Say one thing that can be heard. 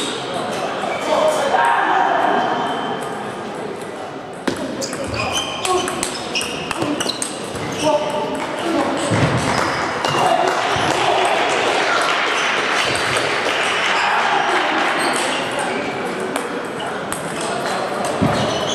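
A table tennis ball clicks back and forth between paddles and the table in an echoing hall.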